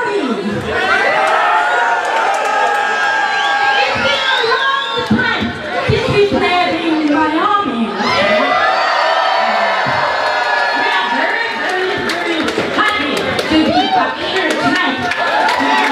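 Loud electronic dance music plays through loudspeakers in a large hall.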